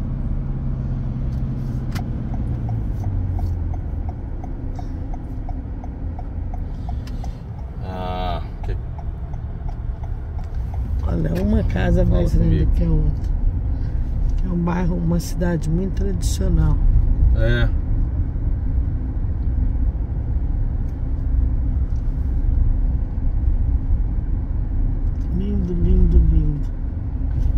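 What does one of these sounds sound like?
A car rumbles steadily along a road.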